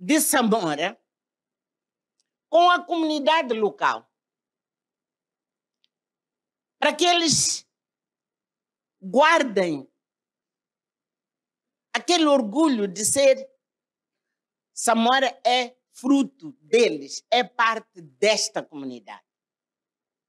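An elderly woman speaks with animation through a microphone, in short bursts with pauses.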